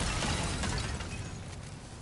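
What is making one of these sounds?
Fire flares up and crackles.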